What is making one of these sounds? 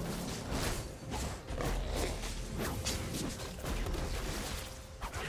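Video game combat effects clash and whoosh rapidly.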